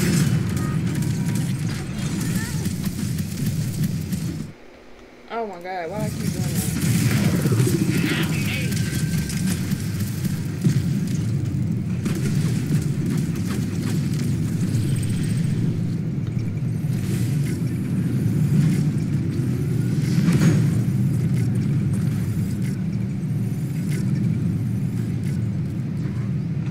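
Rapid gunfire rattles and bangs.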